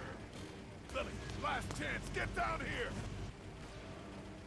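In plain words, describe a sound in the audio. A man calls out urgently.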